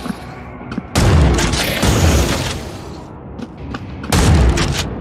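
A heavy gun fires in loud booming bursts.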